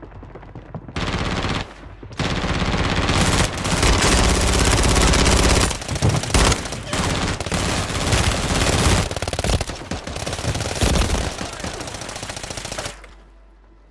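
Rapid gunfire rattles loudly in long bursts.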